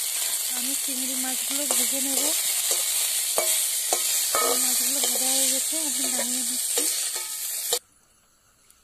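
Shrimp sizzle loudly as they fry in hot oil.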